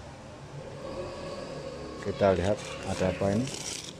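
Hands rummage through crumpled paper, making it rustle.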